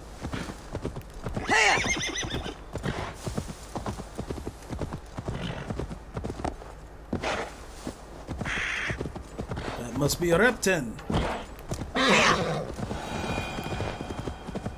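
Horse hooves thud steadily on grass.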